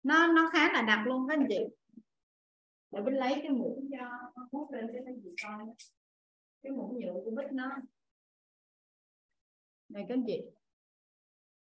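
A young woman talks calmly and cheerfully through a microphone on an online call.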